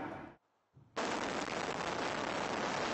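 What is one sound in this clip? Explosive charges go off with a sudden loud blast.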